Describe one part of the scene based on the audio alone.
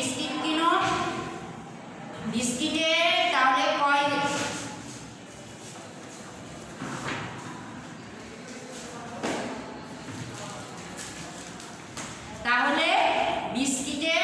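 A young woman speaks calmly and clearly to listeners nearby.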